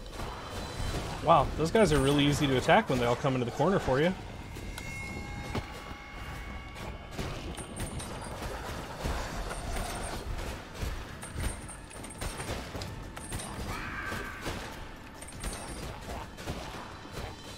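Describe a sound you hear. Swords slash and strike in quick bursts of game sound effects.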